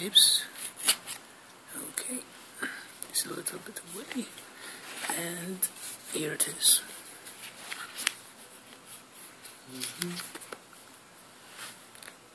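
Hands rustle and tap against a cardboard box.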